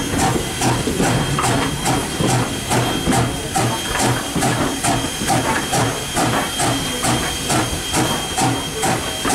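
Steam hisses steadily from a steam locomotive.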